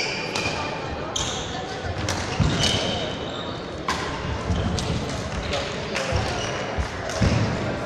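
Sports shoes squeak sharply on a hall floor.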